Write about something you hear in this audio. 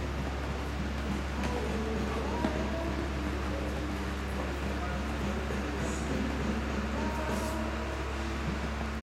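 A horse canters with soft hoofbeats on sand.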